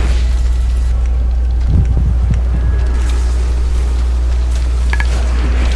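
Fiery spell effects crackle and whoosh in a game battle.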